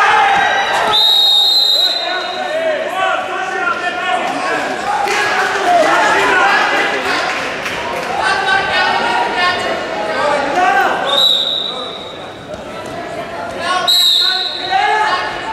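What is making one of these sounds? A referee blows short, shrill whistle blasts.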